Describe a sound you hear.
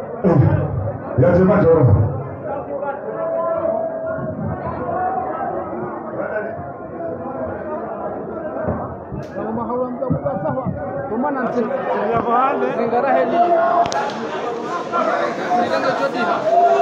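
A crowd chatters and shouts in a large echoing hall.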